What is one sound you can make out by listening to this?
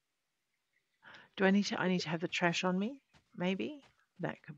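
A woman talks with animation through a close microphone.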